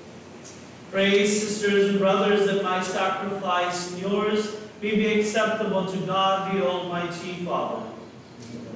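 A man chants in a full voice through a microphone, in an echoing hall.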